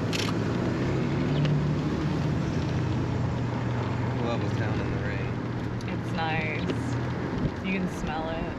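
A pickup truck engine idles nearby.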